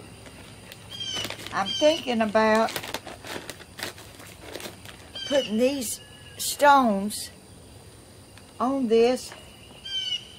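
An elderly woman talks calmly and close by.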